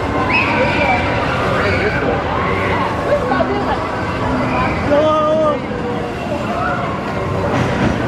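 A crowd of people chatters and calls out in the open air.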